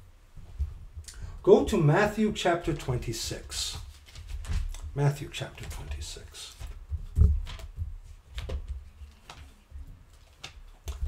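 Small items click and rustle under a man's hands.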